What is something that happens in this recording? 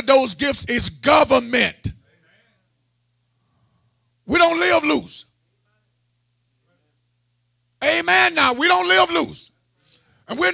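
A man speaks loudly through a microphone with animation, in bursts with long pauses.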